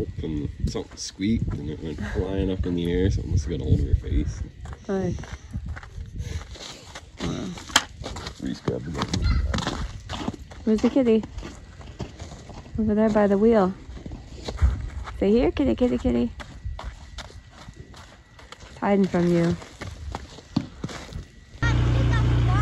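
Small boots squelch in wet snow and slush.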